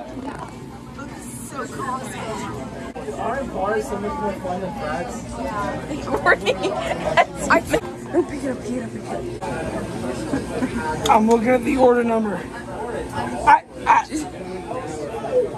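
A young woman talks excitedly close by.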